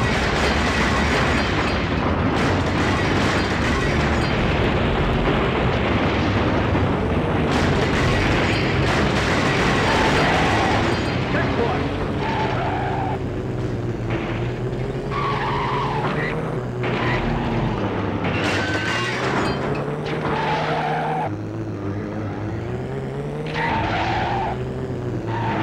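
A racing car engine roars and rises and falls in pitch as it speeds up and slows down.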